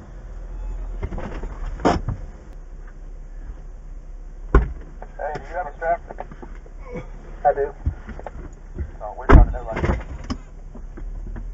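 A vehicle's body creaks and knocks over bumps.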